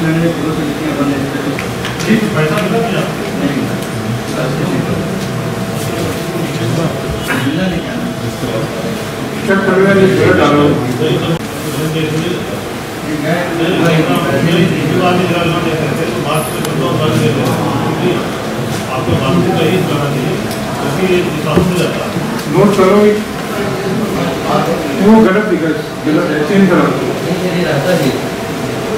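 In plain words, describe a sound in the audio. A man speaks calmly into a microphone in a room.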